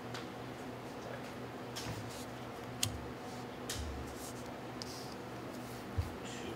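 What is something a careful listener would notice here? Playing cards slide and tap softly on a play mat.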